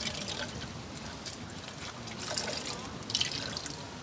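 Liquid trickles and drips into a metal pot.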